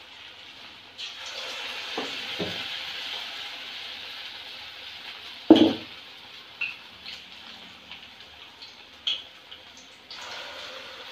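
Batter drops into hot oil with a burst of sizzling.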